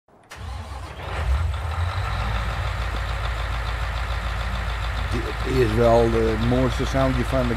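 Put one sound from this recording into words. A large harvester engine idles with a deep, steady rumble.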